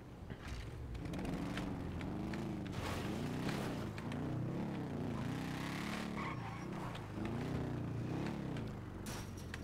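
A motorbike engine revs up and down as it rides.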